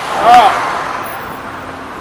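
Cars drive by on a road.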